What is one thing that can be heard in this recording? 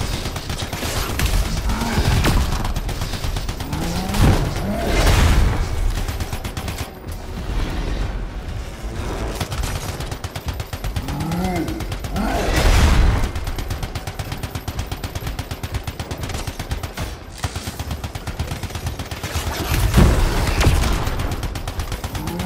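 Electric blasts crackle and zap.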